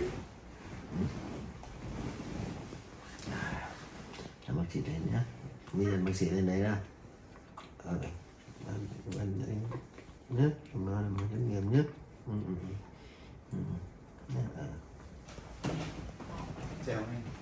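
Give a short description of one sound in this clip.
A man speaks softly and sleepily up close.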